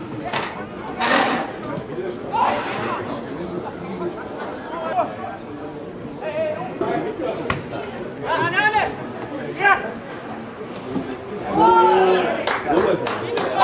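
Men shout across an open football pitch.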